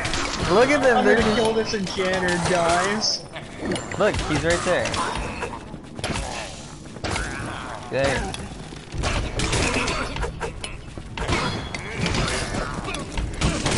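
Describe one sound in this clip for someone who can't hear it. Blows and clanks of a video game fight ring out.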